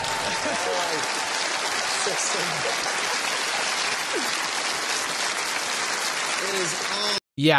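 A large studio audience cheers and applauds loudly.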